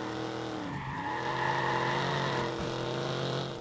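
Tyres screech as a car skids through a turn.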